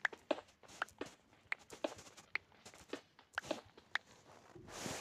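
A pickaxe chips at stone with quick, repeated knocks.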